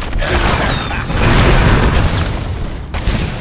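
Loud explosions boom in a quick burst.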